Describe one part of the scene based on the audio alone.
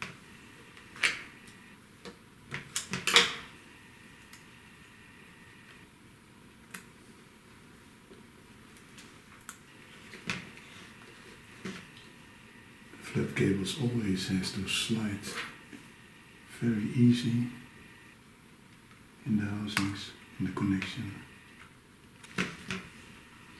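Small metal tools click and tap against a hard plastic casing.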